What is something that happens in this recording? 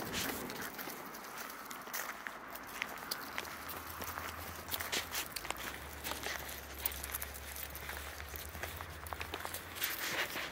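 Puppies' paws patter and crunch on gravel.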